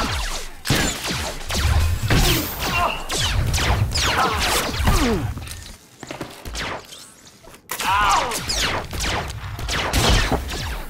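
Energy blasters fire and zap in quick bursts.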